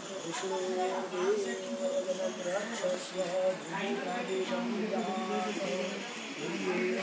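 A man chants a prayer in a steady, sung voice nearby.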